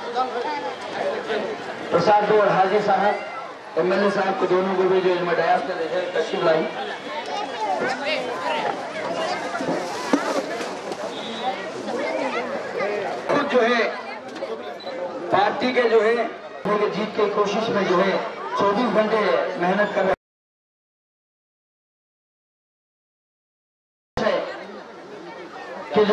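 A crowd of men talks and shouts loudly close by.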